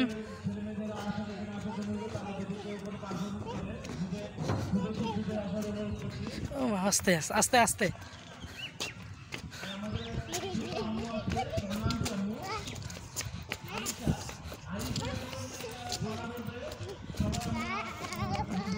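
Small sandals patter on the ground as a young child walks.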